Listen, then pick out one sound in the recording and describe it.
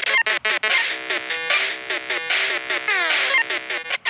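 A cheerful electronic jingle plays for a win.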